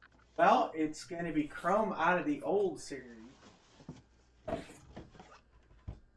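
Satin fabric rustles as it is pulled out of a box.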